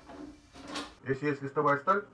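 An elderly man speaks over an online call.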